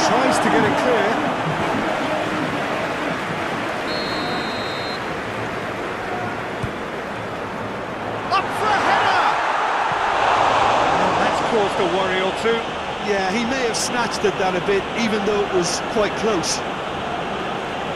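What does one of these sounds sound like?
A large stadium crowd roars steadily, swelling louder for a few seconds.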